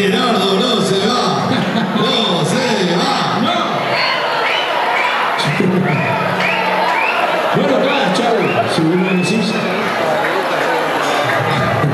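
A man sings into a microphone over loudspeakers in a large echoing hall.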